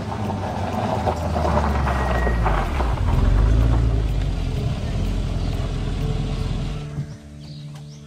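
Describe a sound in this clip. A sports car engine rumbles up close and then cuts out.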